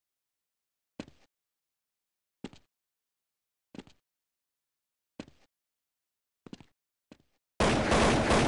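Footsteps tread steadily on hard ground.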